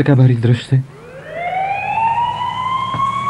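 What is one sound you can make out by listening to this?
A siren wails and rises.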